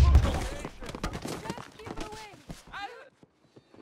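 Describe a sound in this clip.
Gunshots ring out loudly in quick succession.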